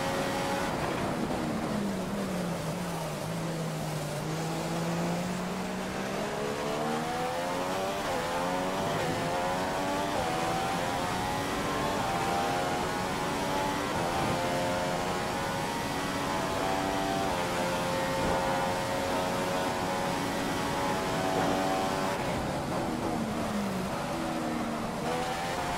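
A Formula One car engine in a racing game slows down, its pitch dropping through downshifts.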